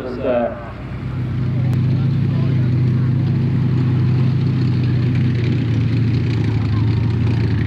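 Tank engines rumble and clatter as tanks drive over dirt.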